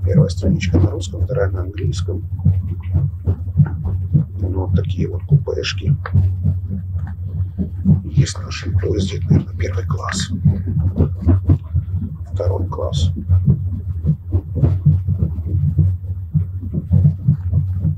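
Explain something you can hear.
A sheet of paper rustles in a hand.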